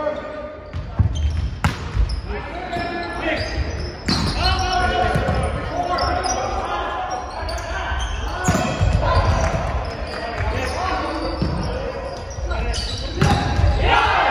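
A volleyball is struck with sharp slaps, echoing in a large gym.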